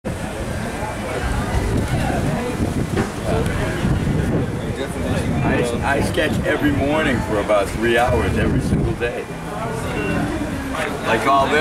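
A crowd chatters in the background.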